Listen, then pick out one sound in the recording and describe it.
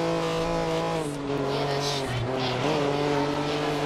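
A prototype race car engine drops in pitch as it shifts down a gear.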